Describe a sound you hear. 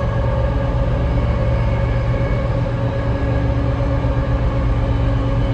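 A train car rumbles and hums loudly as it runs along the tracks.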